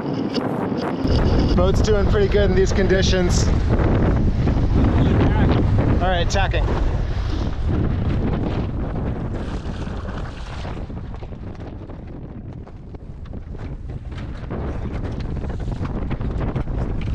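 Wind buffets loudly against a microphone.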